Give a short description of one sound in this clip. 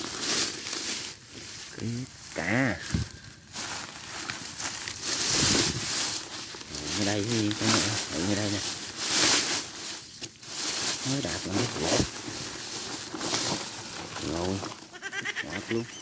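Dry leaves and grass rustle close by.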